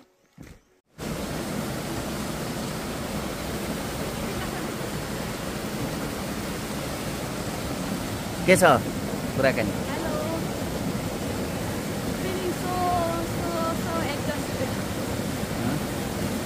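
A waterfall rushes steadily close by.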